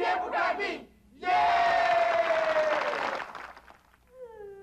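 A group of men and women sings a cheerful theme song with music.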